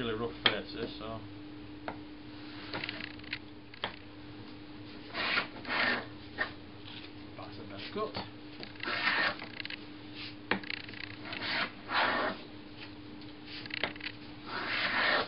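A hand plane shaves wood in long, rasping strokes.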